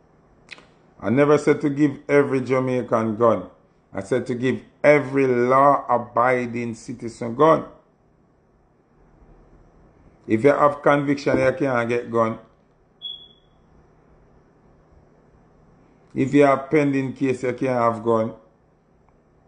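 A man talks calmly and casually into a phone microphone, close up.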